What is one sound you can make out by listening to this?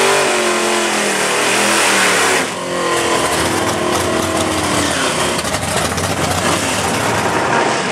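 Tyres screech and squeal as they spin on the track.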